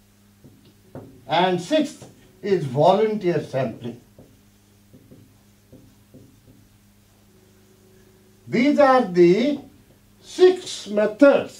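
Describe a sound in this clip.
An elderly man speaks calmly, as if lecturing, into a microphone.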